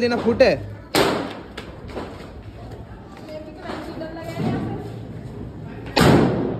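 A firecracker bangs loudly outdoors.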